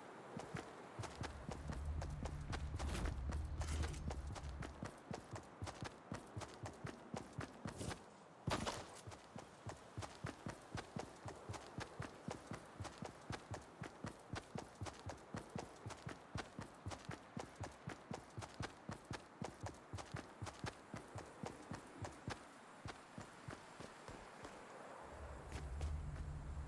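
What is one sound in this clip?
Footsteps thud quickly on grass and dirt as a game character runs.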